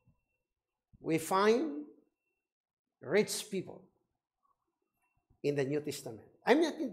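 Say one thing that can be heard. A middle-aged man speaks with animation into a close microphone, in short bursts.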